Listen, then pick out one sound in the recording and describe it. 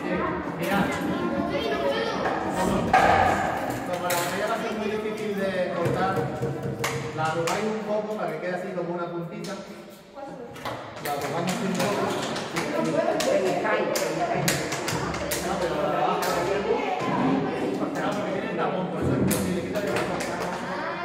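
Children chatter and talk over each other in a room with some echo.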